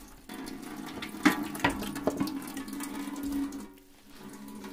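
Water splashes into a metal basin.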